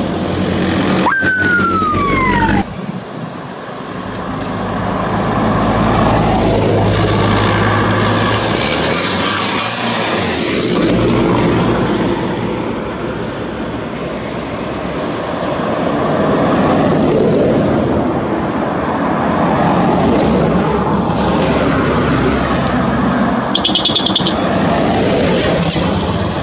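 Off-road vehicles drive past one after another with rumbling engines.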